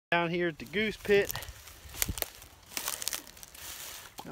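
Dry grass rustles and crackles.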